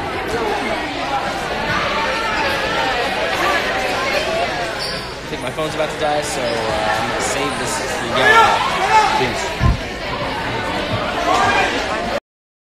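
A crowd of people chatters loudly in a busy room.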